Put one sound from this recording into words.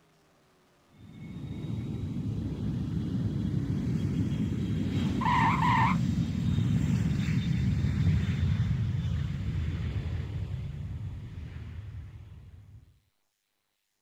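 A jet engine roars loudly, then cuts off abruptly.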